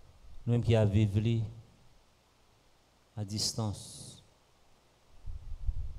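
A man speaks slowly and solemnly into a microphone.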